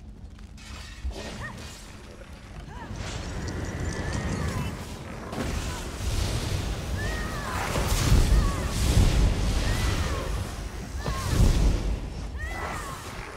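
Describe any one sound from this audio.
Weapons strike with heavy thuds.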